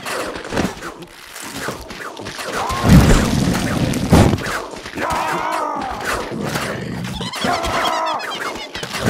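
Cartoonish pops and thuds of projectiles hitting targets sound repeatedly.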